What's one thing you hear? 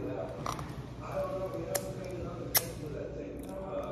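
A young woman smacks her lips.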